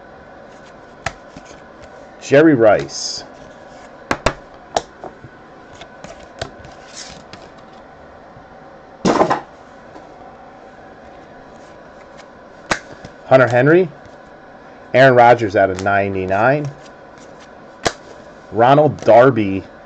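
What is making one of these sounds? Trading cards rustle and click as they are handled and shuffled close by.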